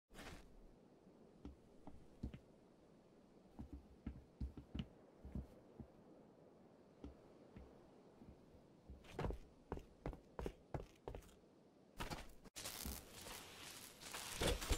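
Footsteps thud on a hard metal floor.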